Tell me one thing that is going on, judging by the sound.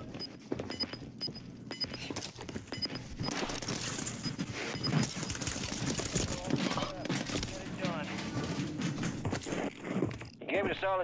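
Gunshots crack rapidly in a game.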